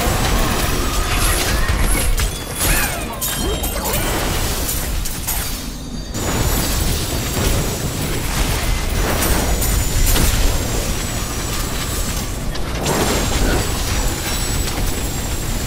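Spells and magic blasts crackle and boom in a fantasy battle.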